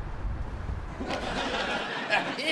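A man speaks cheerfully close by.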